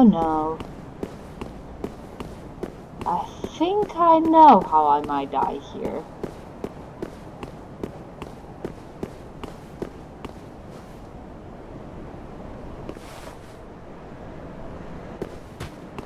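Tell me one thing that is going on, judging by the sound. Armoured footsteps run quickly over stone.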